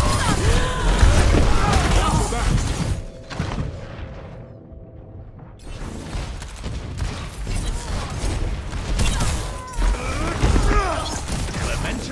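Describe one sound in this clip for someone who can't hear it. Gunfire and explosions blast loudly.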